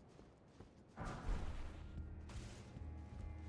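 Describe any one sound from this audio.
Footsteps clank up a metal staircase.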